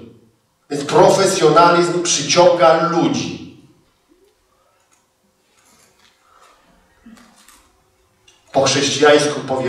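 A man speaks into a microphone over loudspeakers in a large echoing hall, reading out with pauses.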